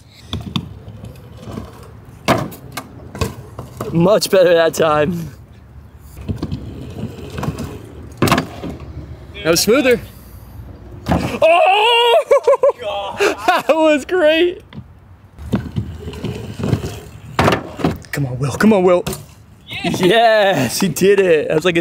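Bicycle tyres rumble over a wooden plank.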